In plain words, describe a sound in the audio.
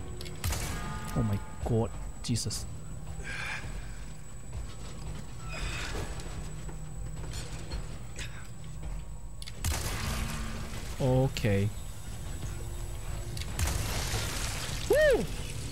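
A young woman speaks into a close microphone with animation.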